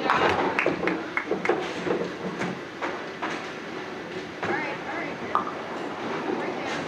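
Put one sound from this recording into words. Bowling pins clatter and balls rumble in a large echoing hall.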